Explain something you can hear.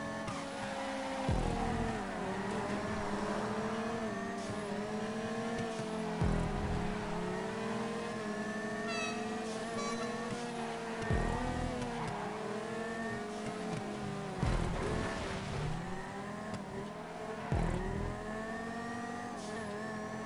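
Car tyres screech while drifting around bends.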